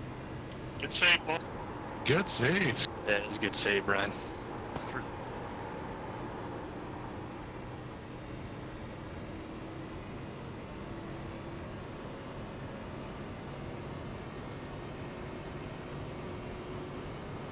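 A racing car engine hums steadily and faintly.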